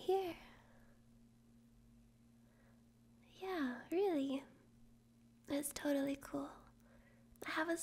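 A young woman speaks softly and playfully, close to a microphone.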